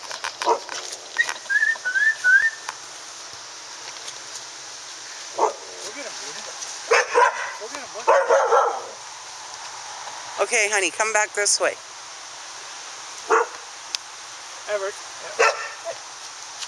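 Puppies yip and bark close by.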